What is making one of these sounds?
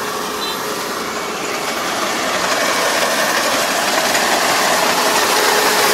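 A combine harvester engine rumbles steadily nearby, growing louder as it approaches.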